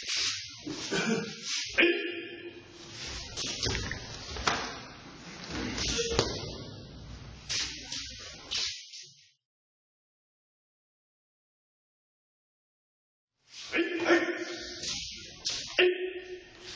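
Feet slide and thump on a padded mat.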